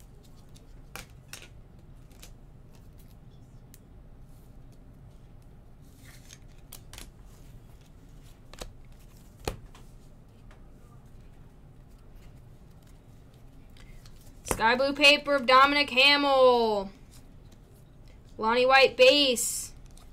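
Trading cards tap and rustle softly in hands.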